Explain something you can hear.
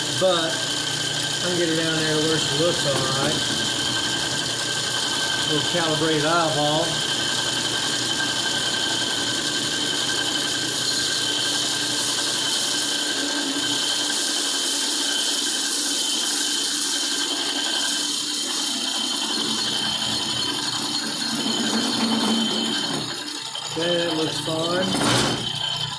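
A metal lathe whirs steadily as its chuck spins.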